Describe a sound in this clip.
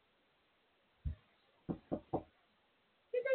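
Knuckles knock sharply on a door several times.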